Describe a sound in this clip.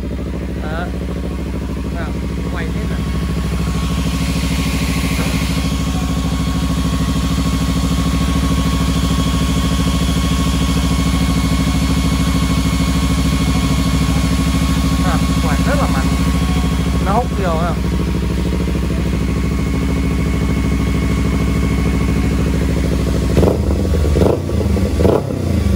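A motorcycle engine idles steadily up close.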